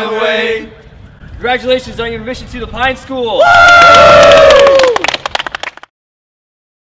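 A group of young men shout together loudly, close by.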